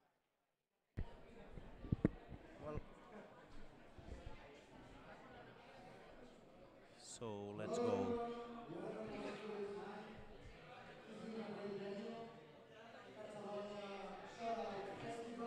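A group of adults chat and murmur nearby in a room.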